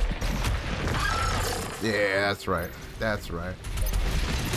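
A monster roars and snarls loudly.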